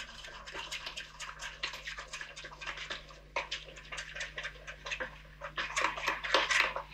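A spoon scrapes and clicks rapidly against a metal bowl.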